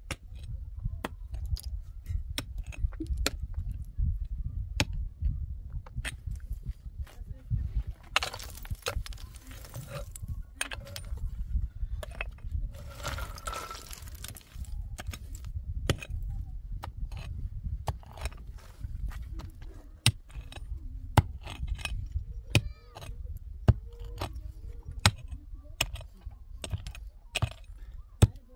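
A hammer strikes rock in sharp, uneven blows.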